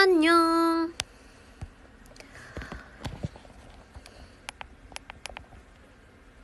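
Clicks and knocks sound from a phone being handled.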